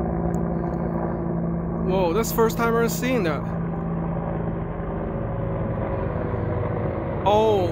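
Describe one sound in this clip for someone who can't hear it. A helicopter's rotor thuds and drones steadily overhead.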